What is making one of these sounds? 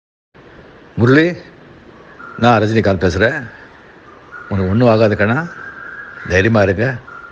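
An elderly man speaks over a phone line in short phrases.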